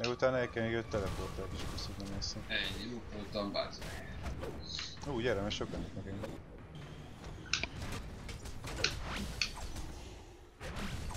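Heavy blows thud and crack in a brawl.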